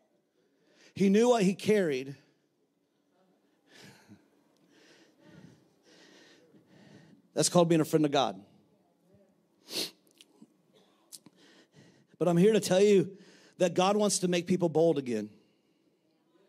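A man speaks passionately into a microphone, heard through loudspeakers, with pauses.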